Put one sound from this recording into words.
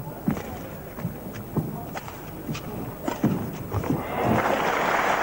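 A shuttlecock is struck sharply with rackets in a large echoing hall.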